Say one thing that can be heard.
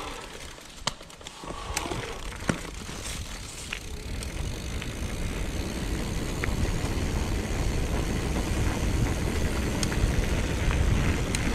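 Wind rushes loudly past a bicycle, growing stronger.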